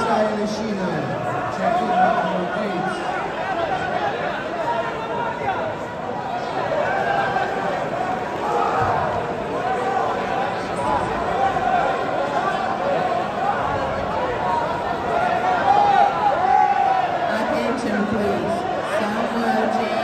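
A crowd of men and women talk and shout in a large echoing hall.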